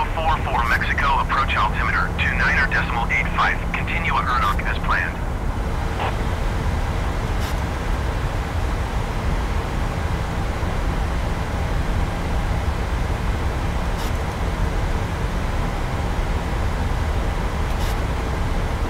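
Jet engines drone with a steady low roar.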